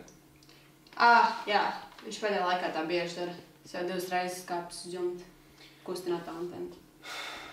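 A young woman speaks nearby, calmly.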